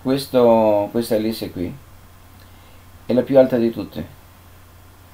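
An elderly man speaks calmly and explains, close to the microphone.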